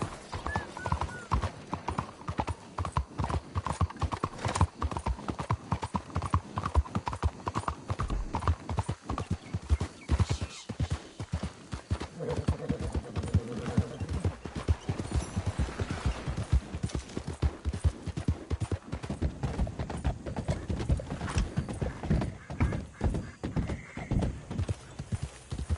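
Horse hooves clop steadily on the ground at a brisk pace.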